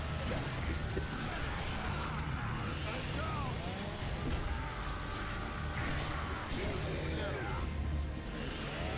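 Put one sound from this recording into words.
A man talks through a headset microphone.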